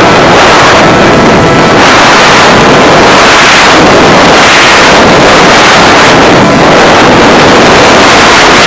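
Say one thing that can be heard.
Wind rushes and buffets the microphone of a recorder on a flying model plane.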